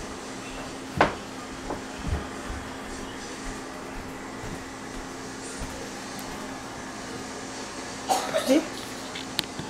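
A young boy speaks briefly nearby.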